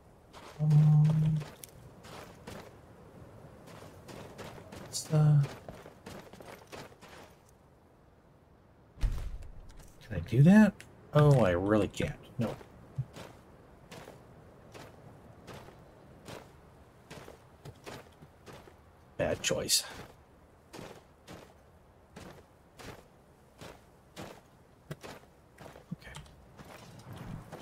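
Footsteps crunch steadily on snowy ground and gravel.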